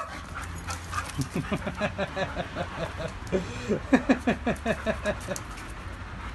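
A dog growls and grumbles in rapid bursts while playing.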